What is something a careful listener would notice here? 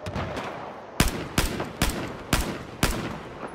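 A rifle fires single loud shots close by.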